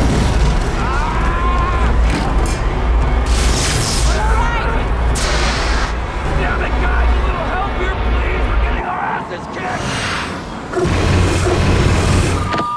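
A man shouts in alarm.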